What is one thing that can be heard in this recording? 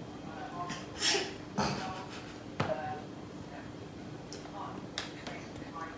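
A young woman laughs softly nearby.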